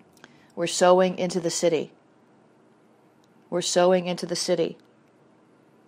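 A woman speaks calmly and clearly into a microphone in two short phrases.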